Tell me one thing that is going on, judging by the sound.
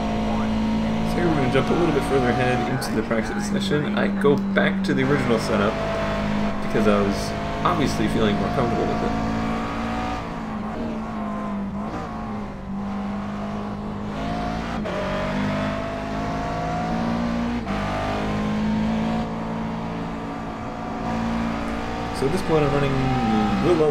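A race car engine roars, its pitch rising and dropping through the gears.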